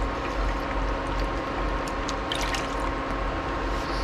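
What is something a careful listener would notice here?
Liquid pours from a plastic cup into a pot of water.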